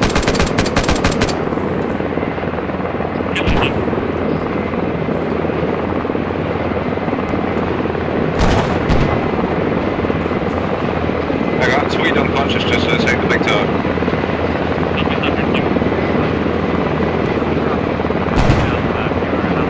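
Rifle shots crack with a short echo.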